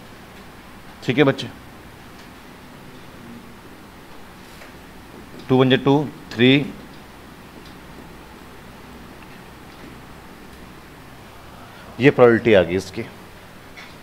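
A man speaks calmly in short bursts through a clip-on microphone.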